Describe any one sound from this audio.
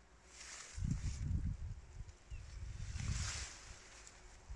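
Tall plants rustle in the wind.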